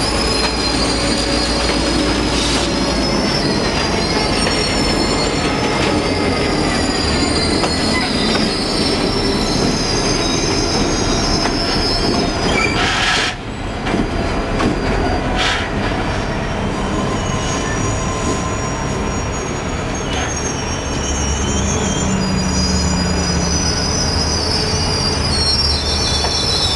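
Train wheels rumble and clatter steadily over rails.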